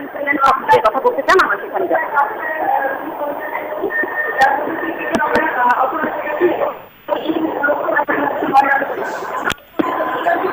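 A crowd of people chatters close by.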